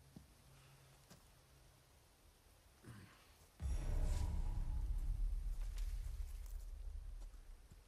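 Footsteps crunch on leaves and gravel.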